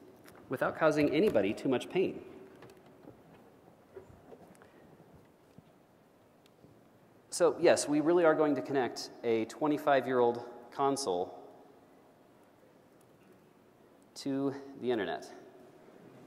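A man speaks through a microphone in a large echoing hall, in short bursts with pauses.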